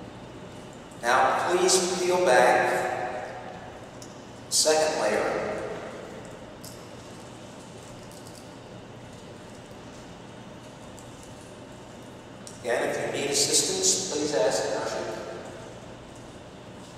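A man speaks in short phrases through a loudspeaker, echoing in a large hall.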